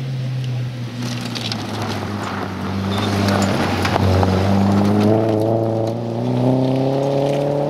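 Gravel crackles and sprays under the car's tyres.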